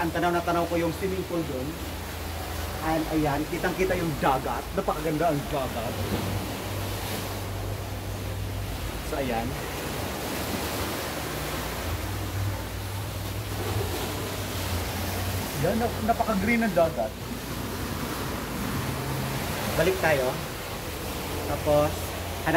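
Wind blows across a microphone outdoors.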